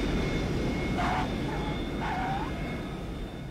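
Tyres screech on the runway as the plane lands.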